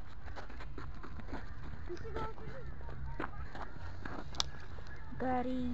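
Small twigs crackle and pop as they burn.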